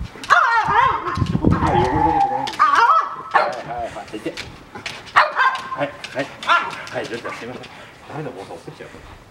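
A small dog yelps and whines excitedly close by.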